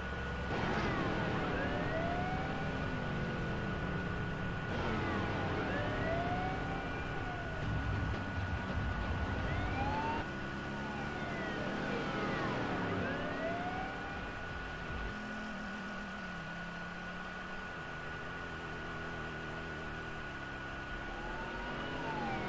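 A police siren wails.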